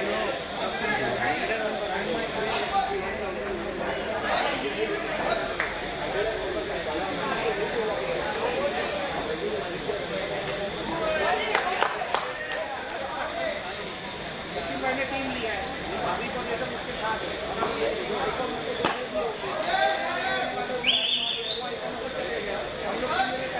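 A group of young men talk and chatter together outdoors.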